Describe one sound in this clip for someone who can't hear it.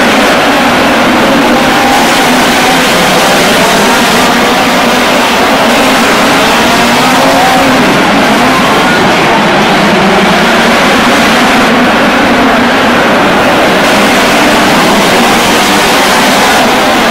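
Racing car engines roar loudly around a dirt track.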